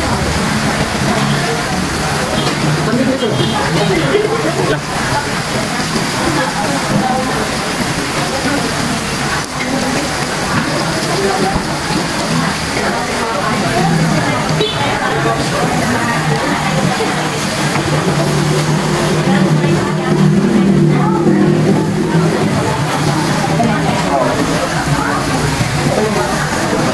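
Many people chatter around, in a busy room.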